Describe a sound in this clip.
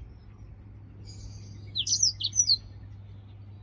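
A small bird chirps and twitters in short high bursts close by.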